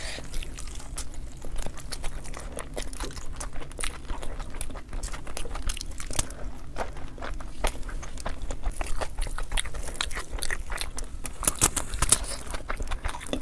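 A man chews food close by.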